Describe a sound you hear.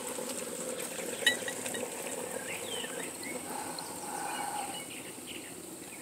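Liquid pours and trickles into a glass funnel.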